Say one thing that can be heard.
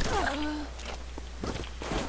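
A rifle's metal parts click and clatter during a reload.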